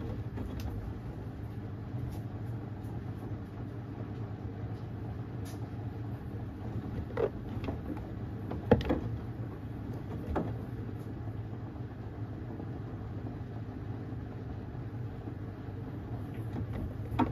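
A washing machine drum hums steadily as it turns.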